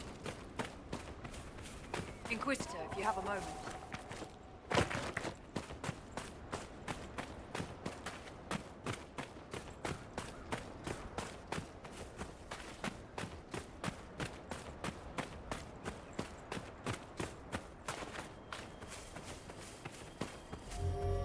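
Footsteps crunch quickly and steadily on sand.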